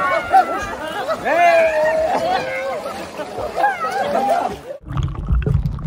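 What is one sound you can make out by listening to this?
Water splashes and churns as many swimmers thrash about.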